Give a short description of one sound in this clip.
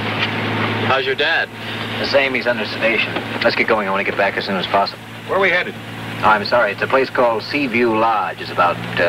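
A man talks quickly and with animation close by.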